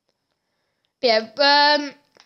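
A person cries out loudly into a microphone.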